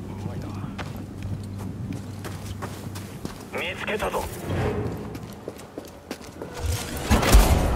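Footsteps run over rock.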